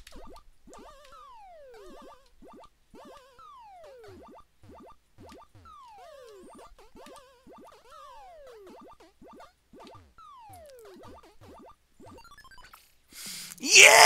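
Retro arcade game sound effects beep and chirp with falling tones.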